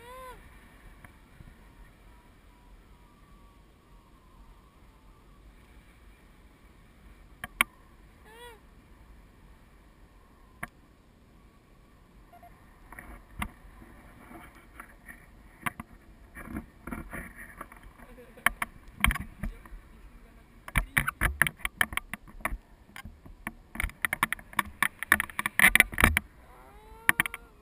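Wind rushes and buffets against the microphone.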